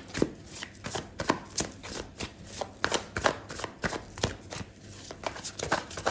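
Tarot cards are shuffled by hand, riffling and slapping together.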